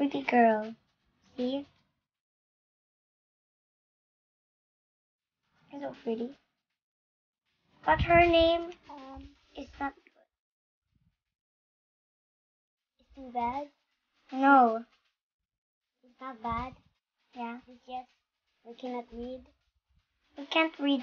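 A young girl talks with animation in short bursts, close by.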